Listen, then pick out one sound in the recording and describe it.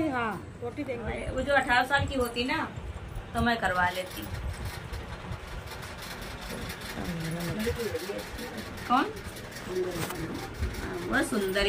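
A woman speaks casually nearby.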